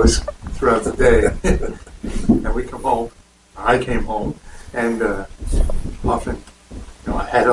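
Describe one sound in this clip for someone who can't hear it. A middle-aged man speaks calmly and cheerfully into a clip-on microphone.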